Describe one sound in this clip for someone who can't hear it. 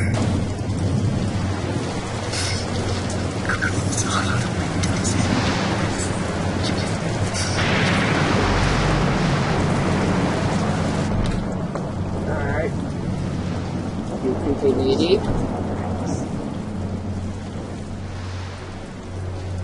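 Rain patters steadily outside.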